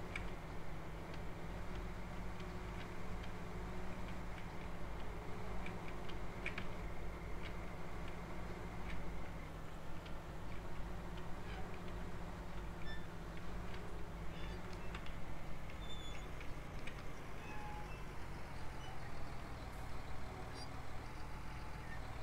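Trailers rattle and clatter over a bumpy track.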